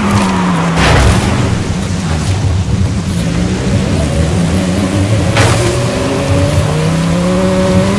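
Tyres skid and bump over rough dirt ground.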